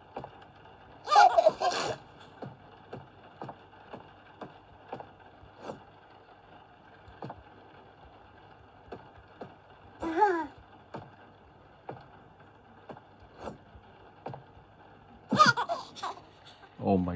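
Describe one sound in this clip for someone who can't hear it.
A baby giggles and babbles through a small tablet speaker.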